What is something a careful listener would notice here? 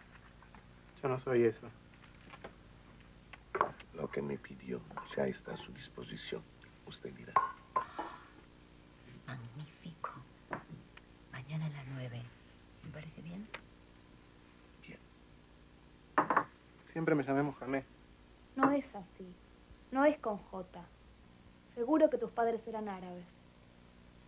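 A woman speaks softly in reply.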